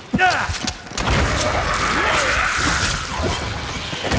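Fiery explosions burst with a loud roar.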